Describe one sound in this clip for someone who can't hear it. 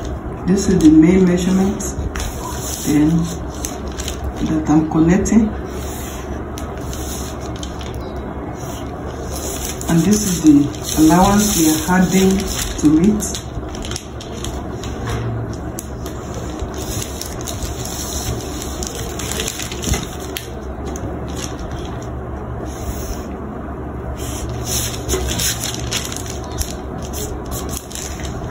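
Paper rustles as a metal ruler slides over it.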